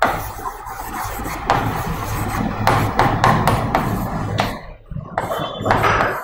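A marker squeaks on a board.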